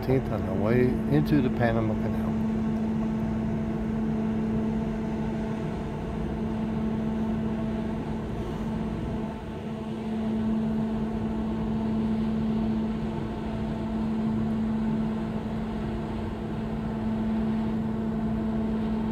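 A ship's engine hums steadily close by.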